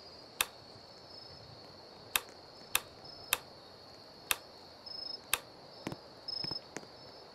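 Game menu buttons click sharply several times.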